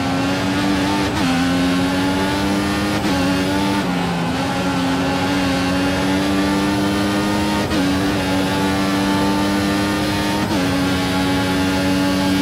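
A racing car engine screams at high revs, dropping briefly with each gear change.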